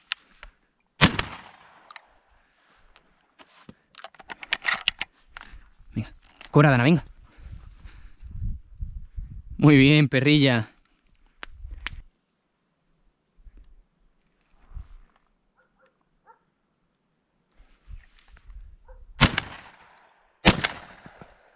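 A shotgun fires loud sharp blasts outdoors.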